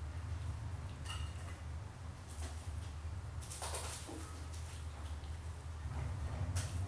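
Kittens shuffle and rustle softly.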